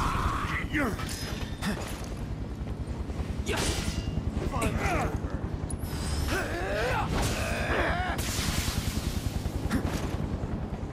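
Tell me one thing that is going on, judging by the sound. A heavy sword swishes and strikes with sharp metallic hits.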